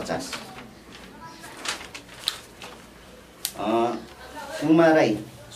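Paper rustles.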